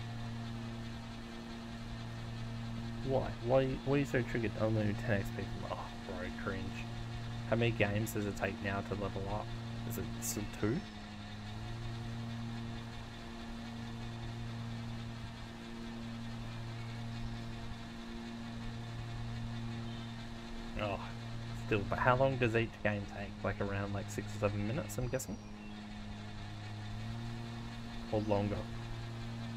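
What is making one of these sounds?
A mower engine hums steadily.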